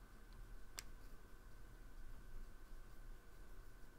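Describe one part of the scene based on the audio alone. A paintbrush softly strokes across paper.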